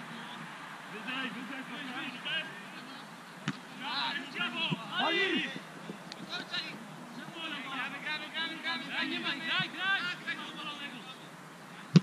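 Men shout to each other in the distance across an open field.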